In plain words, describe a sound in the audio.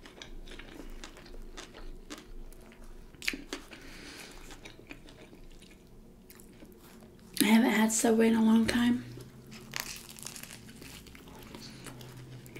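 A woman bites and chews a toasted sandwich close to a microphone.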